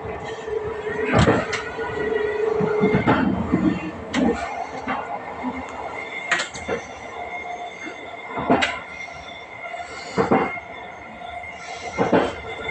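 A train rumbles along the rails with a steady hum.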